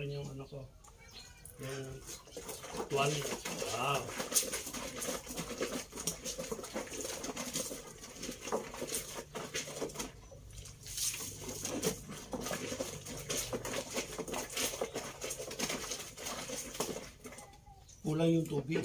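Wet cloth rubs and slaps against itself.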